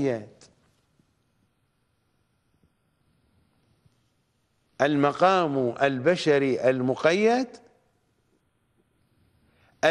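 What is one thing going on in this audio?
A middle-aged man speaks with animation into a close microphone, with pauses.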